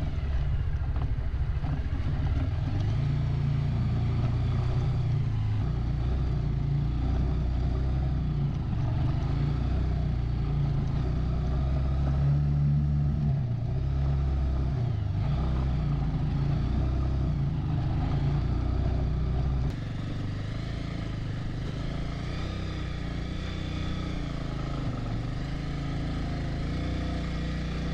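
Tyres crunch over loose gravel and stones.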